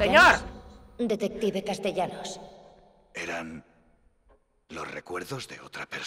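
A young man talks into a close microphone with animation.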